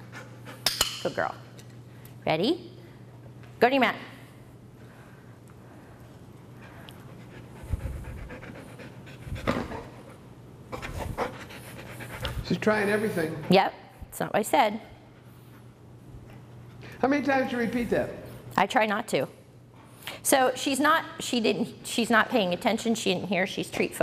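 A woman speaks calmly and encouragingly nearby.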